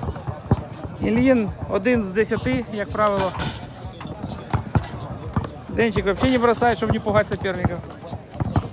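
A man talks loudly outdoors.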